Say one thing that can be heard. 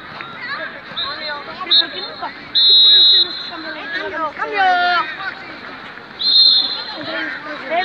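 A referee's whistle blows in short shrill blasts.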